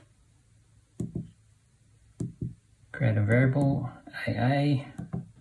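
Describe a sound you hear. Calculator keys click softly under a finger.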